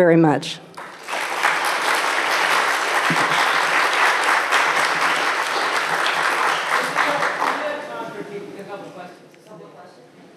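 An audience applauds loudly, then the applause fades.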